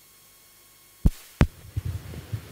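A microphone thumps as it is handled.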